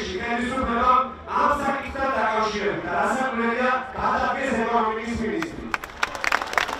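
A man speaks forcefully into a microphone over a loudspeaker outdoors.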